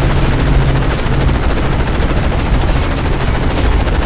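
A helicopter's rotor thumps loudly close by.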